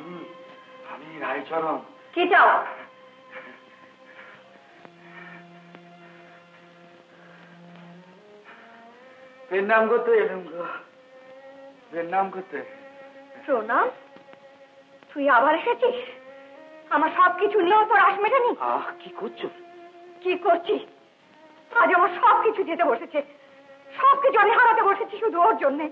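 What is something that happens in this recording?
A young man speaks with feeling, close by.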